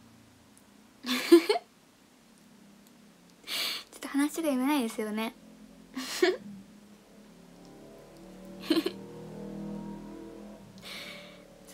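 A young woman laughs brightly and close by.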